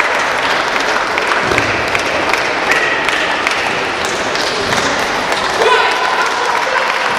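A ping-pong ball clicks back and forth across a table in a large echoing hall.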